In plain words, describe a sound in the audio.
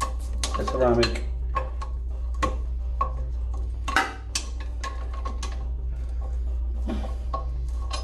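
Metal tools click and scrape against hard porcelain.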